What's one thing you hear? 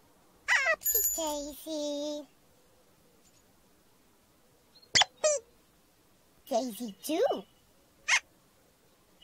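Childlike, high-pitched character voices babble and coo playfully in short bursts.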